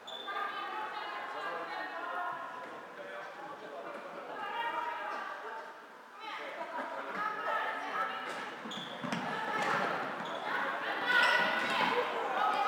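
Sticks clack against a ball in a large echoing hall.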